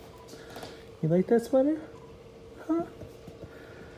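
A small puppy yelps and whimpers in short, high cries.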